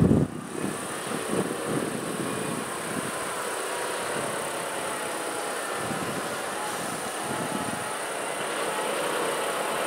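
Heavy truck engines rumble as they approach.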